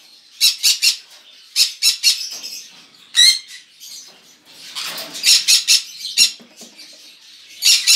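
A wire cage door rattles as it is opened.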